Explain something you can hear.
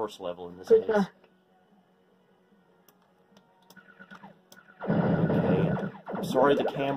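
Video game sounds play through small desktop speakers.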